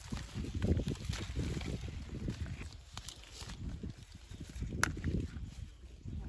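Leaves rustle and brush close by.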